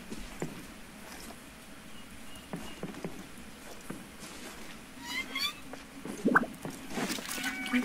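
Footsteps patter on soft ground.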